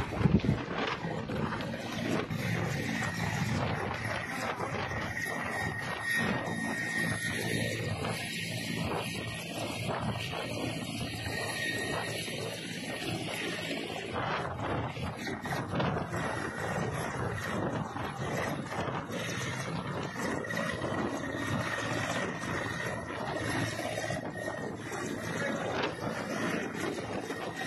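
A helicopter's rotor thuds loudly close by.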